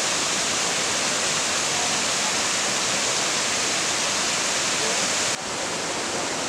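Rain patters steadily on umbrellas.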